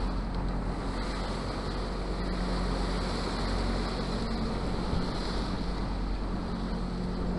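Wind blows hard across the open sea.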